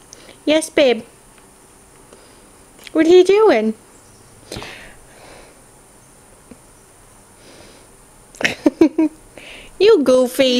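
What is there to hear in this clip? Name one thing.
A young child speaks in a high, playful voice close by.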